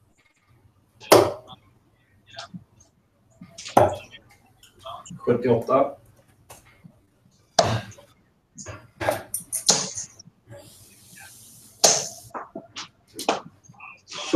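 Darts thud into a bristle dartboard.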